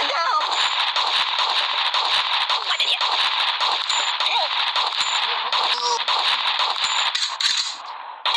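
Game gunshots pop in quick bursts.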